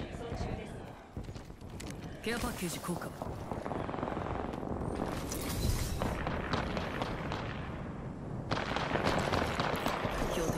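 Footsteps crunch quickly on dirt and rock.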